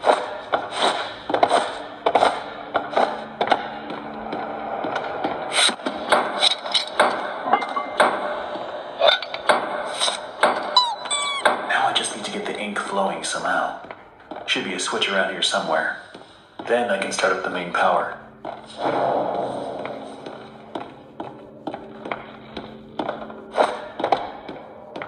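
Footsteps thud on wooden boards from a tablet game.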